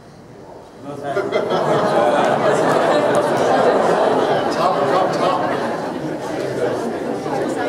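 A crowd breaks into loud cheering and chatter.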